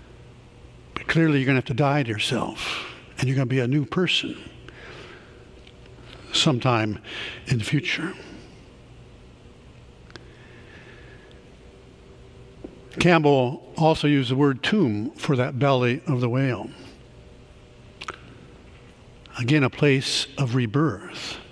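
A middle-aged man speaks calmly into a microphone, with pauses, in a reverberant hall.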